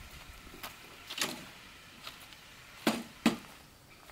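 Dirt spills out of a tipped wheelbarrow onto the ground.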